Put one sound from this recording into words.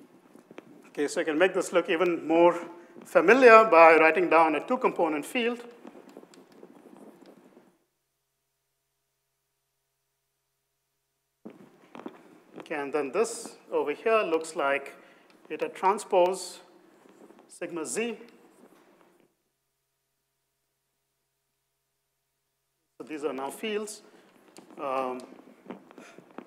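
A man lectures calmly through a microphone, in short bursts with pauses.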